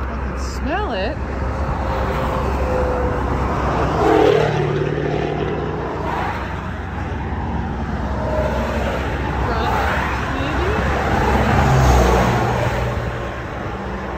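Traffic rushes past on a highway outdoors.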